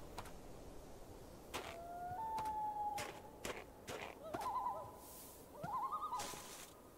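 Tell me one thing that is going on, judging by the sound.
Footsteps crunch over snow at a walking pace.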